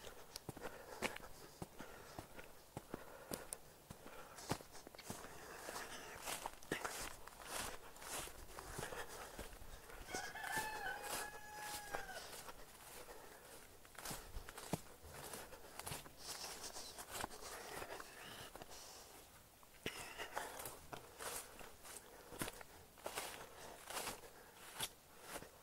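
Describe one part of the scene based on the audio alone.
Footsteps swish and rustle through wet grass.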